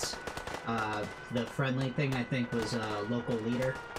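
Laser rifles fire in sharp zaps.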